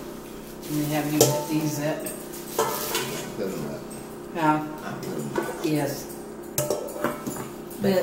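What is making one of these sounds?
Metal pots clank and knock together.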